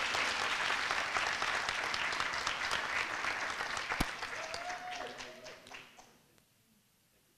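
An audience applauds loudly in a large hall, then the clapping fades away.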